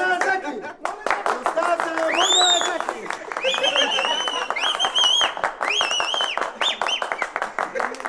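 Several people clap along fast.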